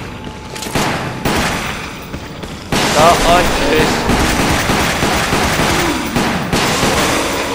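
Gunshots ring out in loud, sharp bursts.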